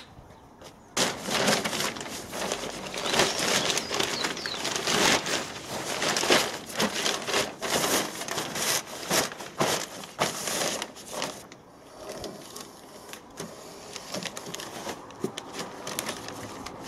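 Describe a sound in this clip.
A plastic sheet rustles and crinkles as it is handled.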